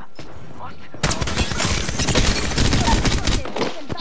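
A gun fires rapidly and loudly.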